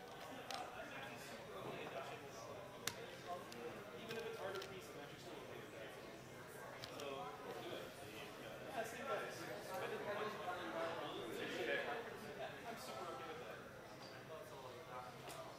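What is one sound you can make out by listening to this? Cards slide and tap on a soft playing mat.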